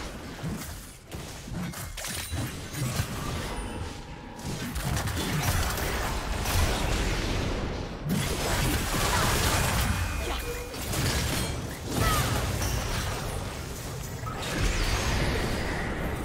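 Video game spell blasts and clashing weapon effects ring out during a fight.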